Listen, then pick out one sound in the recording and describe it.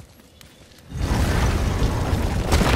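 A heavy door grinds and rumbles open.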